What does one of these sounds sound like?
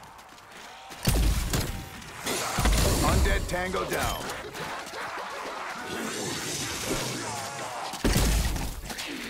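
Gas explodes with a deep thump.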